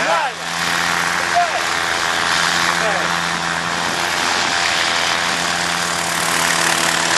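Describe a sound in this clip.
A small helicopter engine whines steadily as its rotor spins.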